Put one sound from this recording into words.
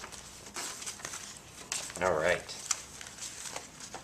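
Bubble wrap crinkles.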